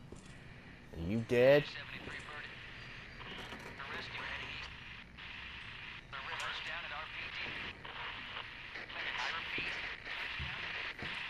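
Footsteps tread slowly across a floor.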